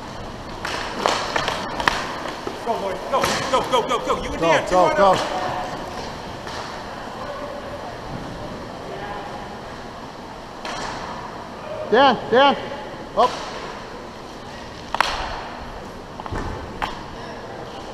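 Hockey sticks clack sharply against a puck and the ice.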